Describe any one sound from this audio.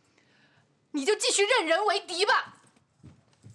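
A young woman speaks firmly at close range.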